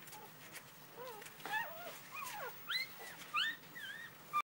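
A newborn puppy squeaks and whines in high, wavering cries close by.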